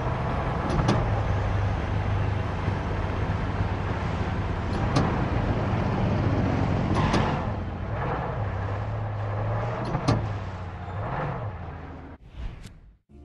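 An engine idles with a low, steady rumble.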